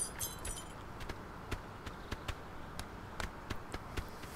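A goose's webbed feet patter softly as it waddles along.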